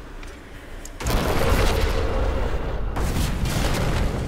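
A magical burst whooshes and shimmers as a character revives.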